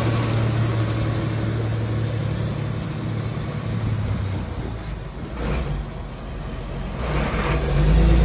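A tractor's diesel engine rumbles loudly as the tractor drives past close by.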